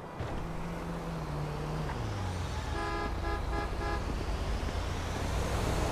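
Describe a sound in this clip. Cars drive by on the road.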